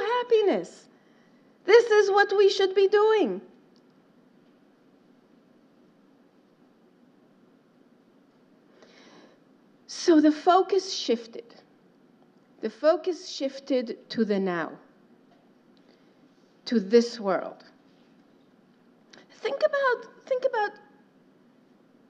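A middle-aged woman speaks calmly through a microphone, with long pauses.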